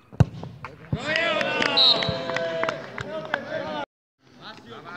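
A crowd of young men cheers and shouts outdoors.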